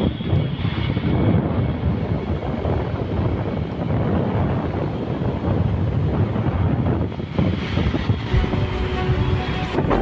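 Auto rickshaws and traffic rumble past.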